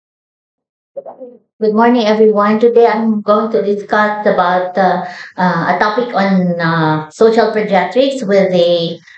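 A woman speaks calmly and steadily through a microphone.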